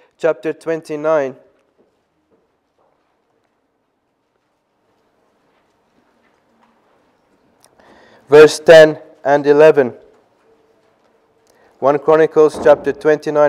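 A young man speaks into a microphone in short bursts with long pauses.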